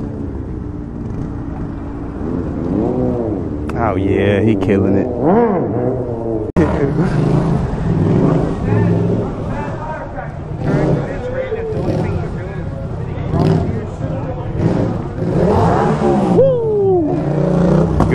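Motorcycle engines rev loudly, rising and falling in pitch.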